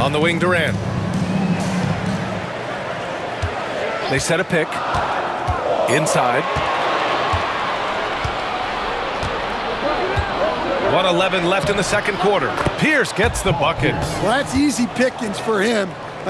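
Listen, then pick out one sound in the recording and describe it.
A crowd in a large arena murmurs and cheers.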